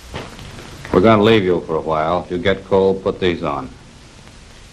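A man speaks firmly and clearly, close by.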